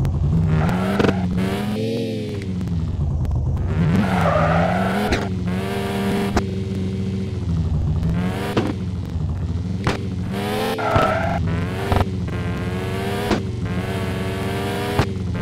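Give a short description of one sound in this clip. A car thumps and bangs as it lands on rough ground.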